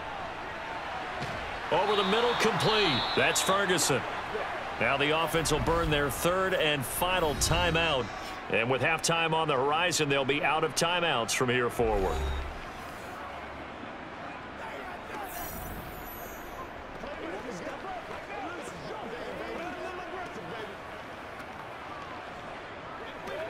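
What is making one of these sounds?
A crowd murmurs in a large stadium.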